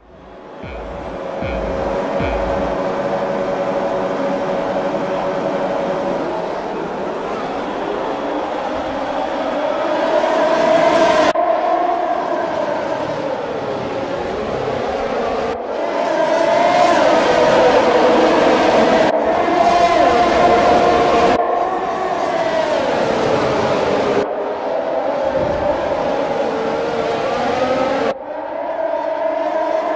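Racing car engines whine loudly, rising and falling in pitch as the cars speed past.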